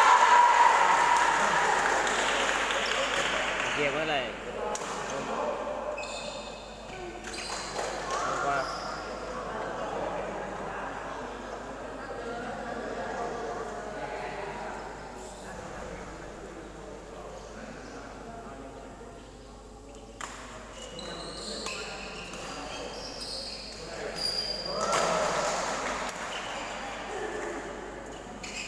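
Several people chatter and call out in the background.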